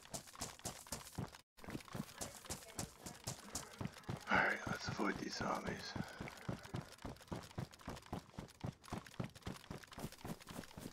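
Footsteps crunch steadily on grass and gravel.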